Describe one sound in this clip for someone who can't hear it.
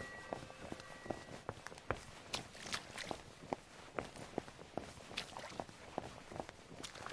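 Footsteps crunch steadily on a wet path.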